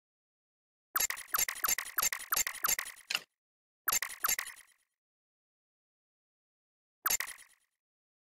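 Short menu clicks tick in quick bursts.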